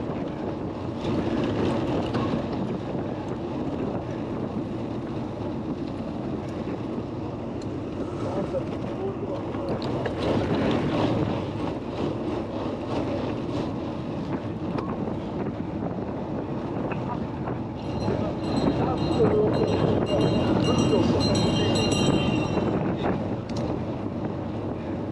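Wind rumbles steadily past a moving bicycle.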